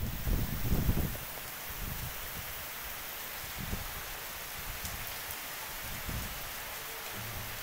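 Wind gusts and rumbles.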